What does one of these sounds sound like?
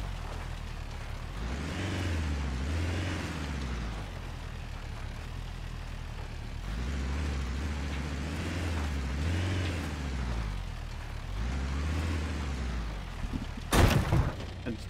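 A car engine revs and rumbles as it drives.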